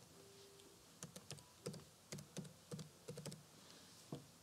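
Keys click on a computer keyboard as someone types.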